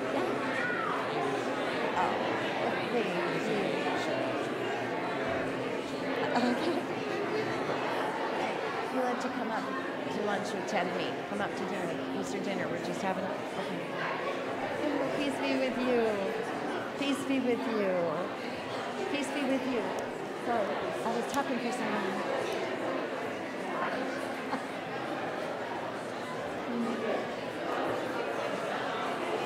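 A large crowd of men and women chatters with many voices overlapping in an echoing hall.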